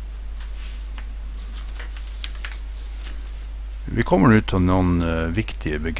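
Paper rustles as a sheet is turned over.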